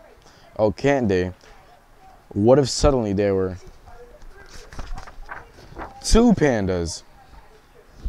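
A teenage boy reads aloud with expression, close by.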